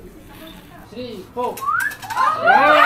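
A group of young men and women cheer and shout together.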